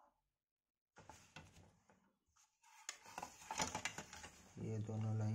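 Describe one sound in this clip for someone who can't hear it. A plastic set square scrapes and taps against paper.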